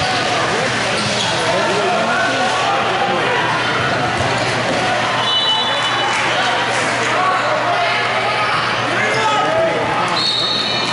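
Young men shout and call out across a large echoing hall.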